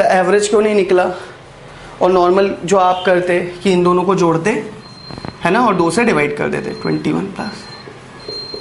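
A young man speaks with animation close to a microphone, explaining.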